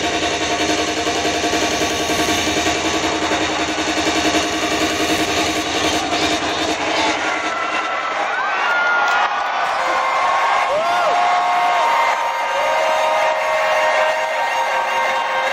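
Loud electronic music plays through large speakers in a big hall.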